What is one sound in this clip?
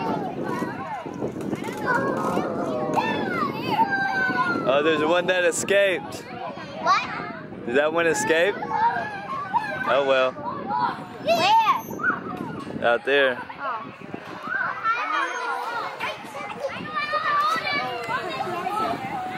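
Young children shout and chatter excitedly nearby, outdoors.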